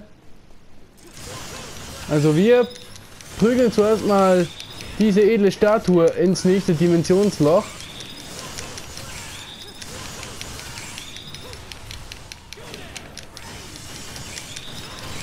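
Metal blades slash and clang rapidly.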